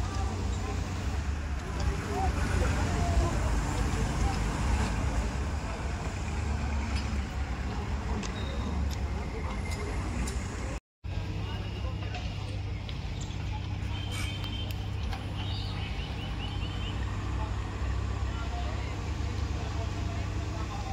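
A crane engine hums steadily.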